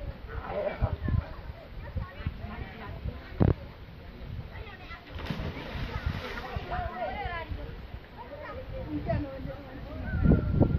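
A crowd of children and adults shout and chatter outdoors at a distance.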